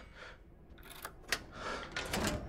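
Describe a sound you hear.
A key turns and clicks in a lock.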